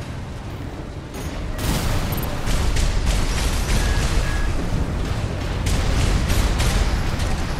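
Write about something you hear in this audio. Jet thrusters roar steadily.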